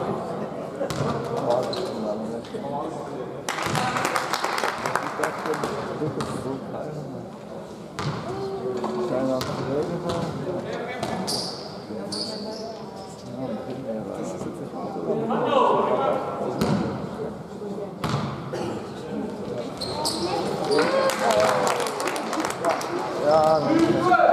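Players and spectators call out and shout, echoing in a large hall.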